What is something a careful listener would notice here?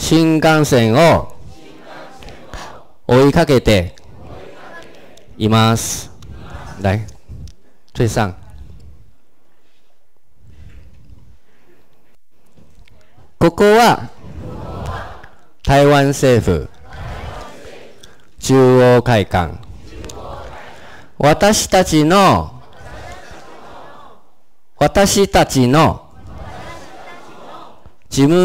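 A man speaks through a microphone in short, clear phrases, with a roomy echo and pauses between.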